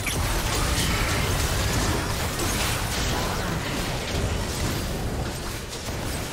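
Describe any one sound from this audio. Spell effects crackle and boom in a fast video game battle.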